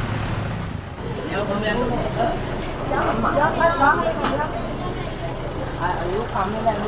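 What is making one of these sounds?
Men and women talk loudly and excitedly close by.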